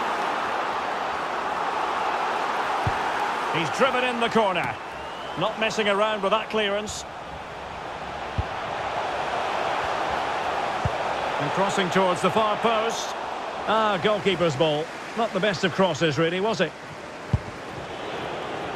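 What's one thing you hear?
A large stadium crowd roars and murmurs.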